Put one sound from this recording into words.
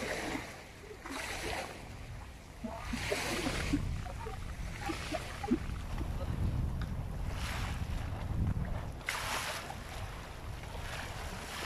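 Water splashes and laps against wooden boats.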